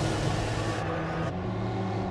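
A race car's engine races close by.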